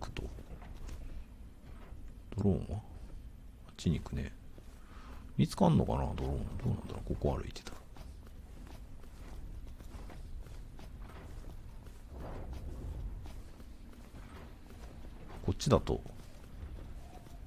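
Footsteps crunch softly on snowy ground.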